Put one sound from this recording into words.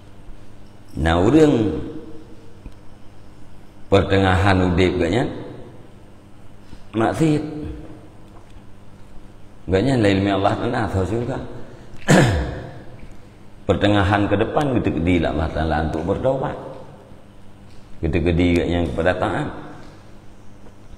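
A man speaks slowly and with emphasis into a close microphone, in bursts with pauses.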